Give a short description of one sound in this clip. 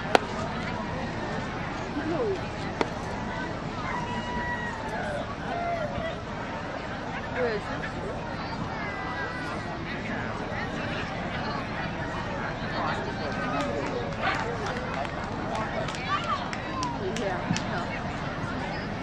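A crowd of adults chatters in the background outdoors.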